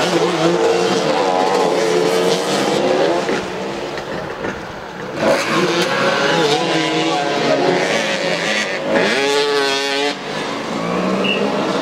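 Motorcycle engines buzz and rev nearby outdoors.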